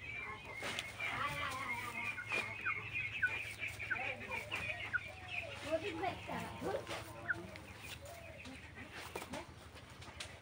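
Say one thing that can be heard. A hen clucks softly close by.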